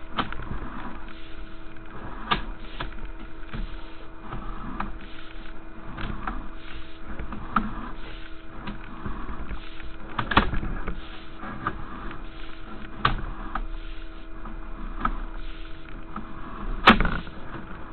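Wheels knock and clatter against a pipe now and then.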